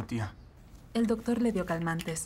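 A woman speaks with emotion nearby.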